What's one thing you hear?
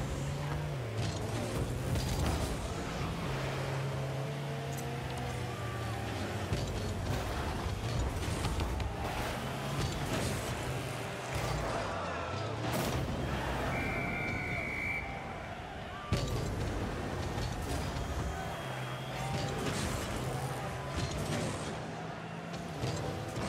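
A car engine hums and revs throughout.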